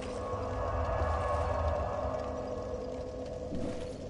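A bonfire crackles softly.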